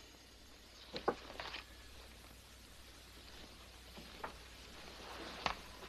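Footsteps sound on a floor.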